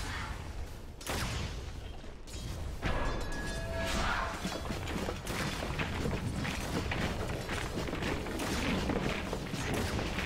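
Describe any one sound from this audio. Clashing hits and impacts ring out repeatedly.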